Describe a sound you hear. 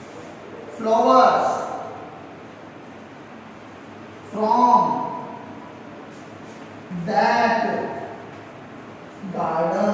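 A young man speaks slowly and clearly while reading out, close by.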